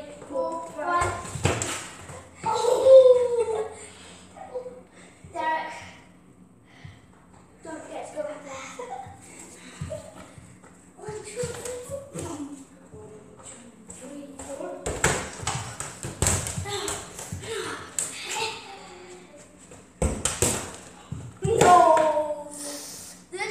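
Bare feet thud and patter on a hard floor.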